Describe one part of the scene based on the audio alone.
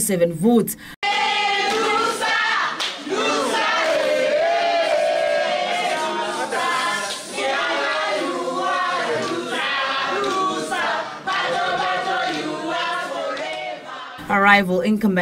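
A crowd sings loudly together.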